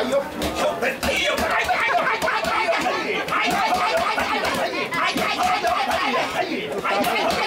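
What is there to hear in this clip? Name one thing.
Men shout rhythmic calls close by.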